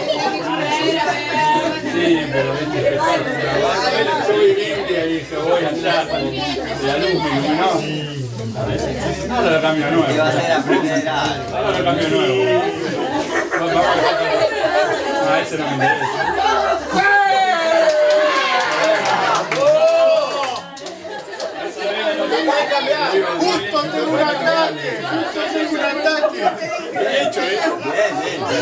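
A group of people chat and laugh at the same time.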